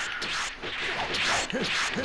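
Fighters trade rapid punches and kicks with sharp impacts.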